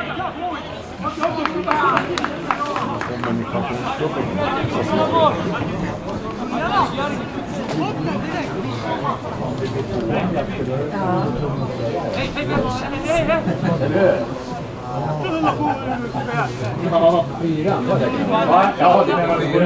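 Young men shout and call to each other outdoors at a distance.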